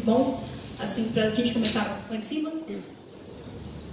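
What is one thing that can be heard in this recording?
A woman speaks calmly into a microphone over loudspeakers.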